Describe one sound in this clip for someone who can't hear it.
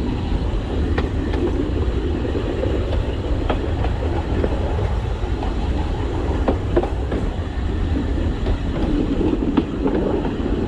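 Wheels clatter and click over rail joints.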